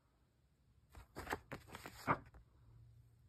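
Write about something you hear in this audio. A paper card rustles and taps as it is handled.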